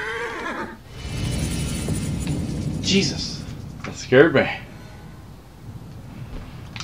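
Chariot wheels rumble over rough ground.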